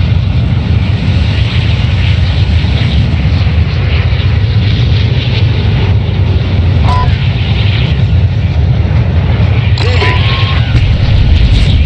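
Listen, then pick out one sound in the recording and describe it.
A large plane's engines drone steadily.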